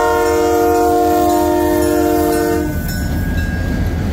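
Wheels clatter on the rails as freight cars roll past.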